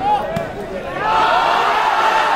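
A crowd bursts into loud cheering.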